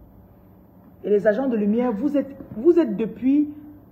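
A young woman speaks with animation close to a phone microphone.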